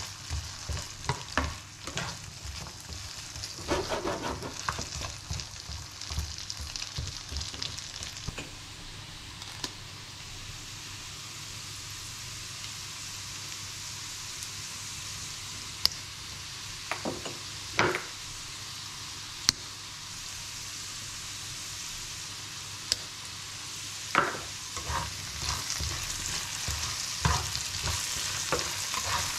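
A spatula scrapes and stirs potatoes in a frying pan.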